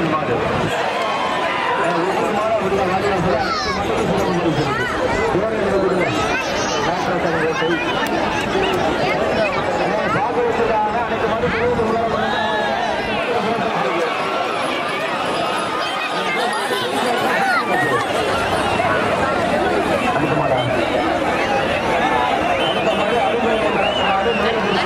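A large crowd of men shouts and cheers outdoors.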